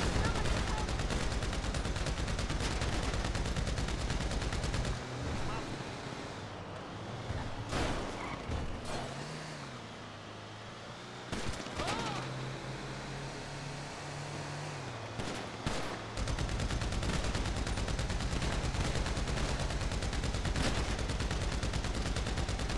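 A van engine hums steadily as it drives along a road.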